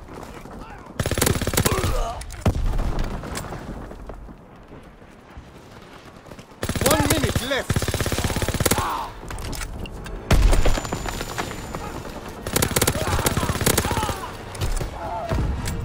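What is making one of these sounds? A machine gun fires rapid bursts up close.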